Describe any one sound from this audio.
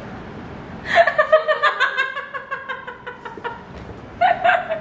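A woman laughs loudly close by.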